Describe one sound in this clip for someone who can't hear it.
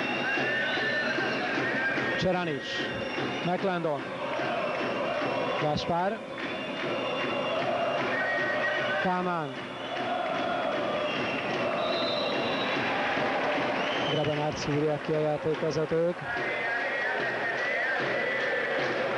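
A large crowd cheers and chants loudly in an echoing hall.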